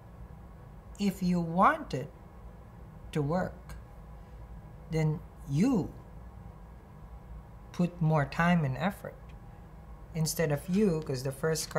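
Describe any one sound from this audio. A young man speaks calmly and slowly in short phrases, close by.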